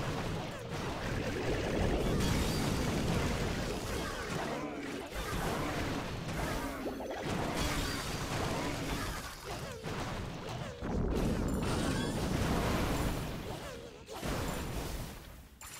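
Buildings crumble and explode.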